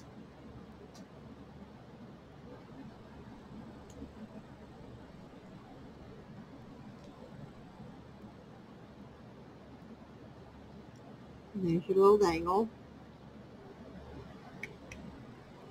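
Small metal pieces click softly against pliers.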